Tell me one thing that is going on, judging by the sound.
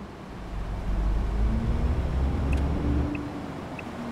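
A truck engine revs up loudly.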